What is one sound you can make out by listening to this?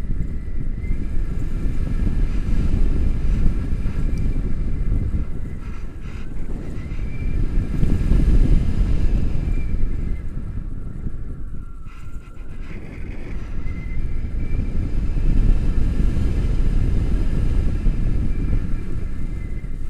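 Wind roars loudly past a microphone outdoors.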